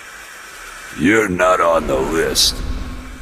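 A bright magical chime swells and shimmers.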